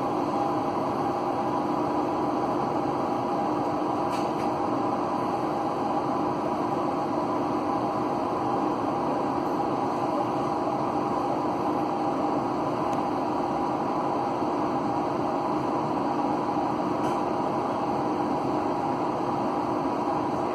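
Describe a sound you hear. A tram rolls along the tracks with a steady motor hum and rumble.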